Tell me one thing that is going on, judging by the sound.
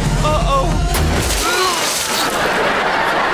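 Liquid sprays and splashes with a loud rush.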